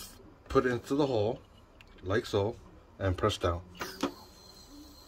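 A metal gas canister clanks and clicks into place on a camping stove.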